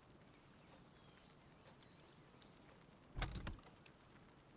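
A wooden chest lid thuds shut.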